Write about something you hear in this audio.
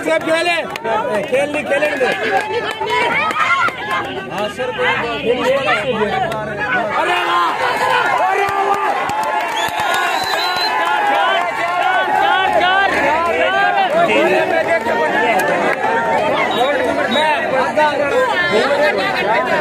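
A large outdoor crowd of young people cheers and shouts loudly.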